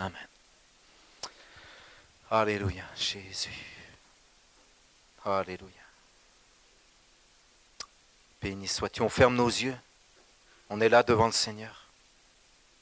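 A middle-aged man speaks with fervour into a microphone, in short bursts with pauses.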